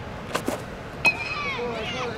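A baseball smacks into a leather glove with a sharp pop.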